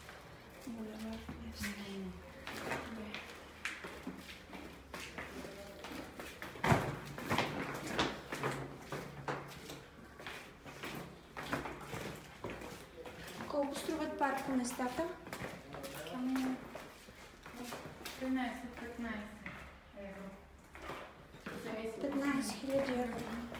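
Footsteps scuff on a concrete floor.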